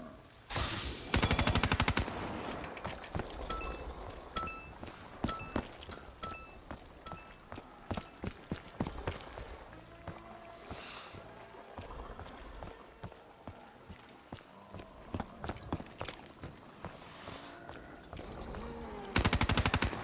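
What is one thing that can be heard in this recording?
A rapid-fire gun shoots in loud bursts.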